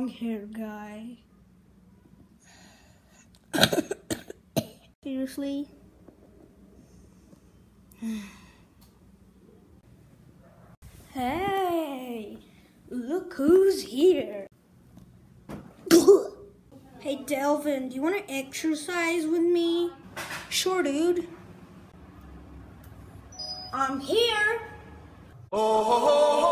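A young boy talks close by, with animation.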